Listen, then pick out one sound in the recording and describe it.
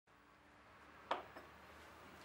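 A china cup clinks onto a saucer.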